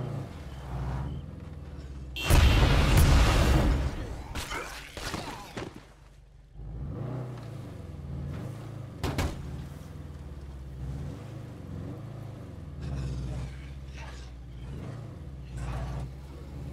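A car engine hums low and rises and falls as the car drives.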